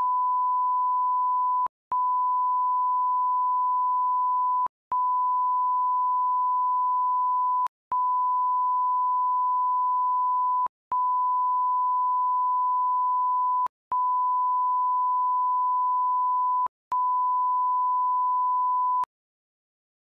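A steady high test tone beeps on and off, with a short break about every three seconds.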